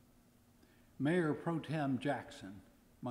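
A middle-aged man speaks calmly into microphones.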